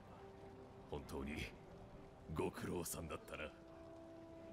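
A man speaks calmly in a deep, rough voice.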